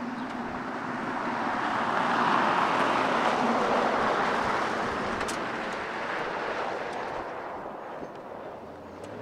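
A pickup truck rumbles along a gravel road, growing louder as it passes and then fading.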